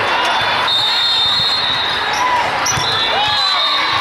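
A volleyball is struck with a hollow thump.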